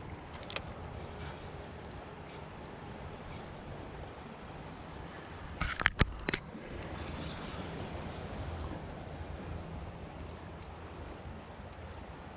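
A fishing reel clicks softly as its handle is wound.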